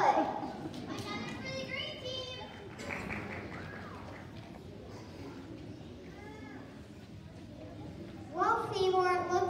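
A crowd of people murmurs quietly.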